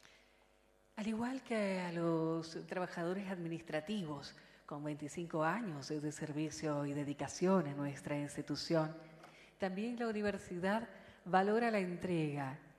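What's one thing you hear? A woman speaks calmly and clearly through a microphone and loudspeakers.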